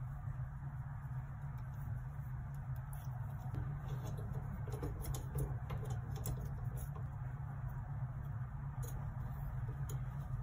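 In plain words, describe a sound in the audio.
Plastic parts click and knock.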